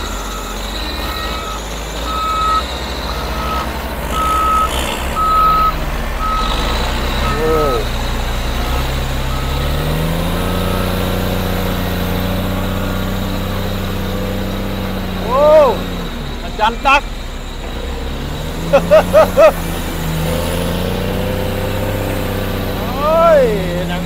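Big tyres squelch and crunch through wet mud.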